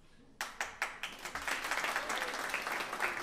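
An audience bursts into loud applause.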